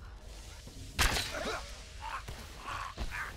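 A loud explosion booms and crackles with fire.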